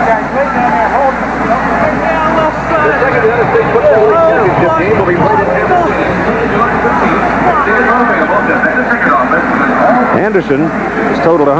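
A crowd of men talk and call out all around, close by.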